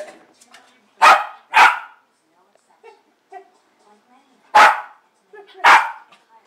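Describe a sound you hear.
A dog barks loudly at close range.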